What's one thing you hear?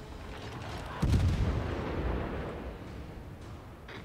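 Heavy guns fire with deep, rolling booms.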